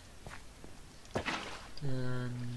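Water splashes briefly as a bucket is poured out.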